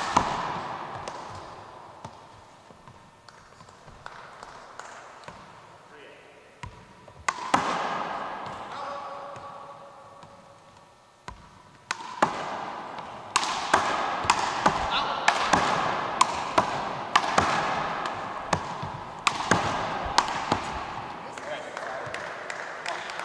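A basketball bounces on a hardwood floor in a large echoing gym.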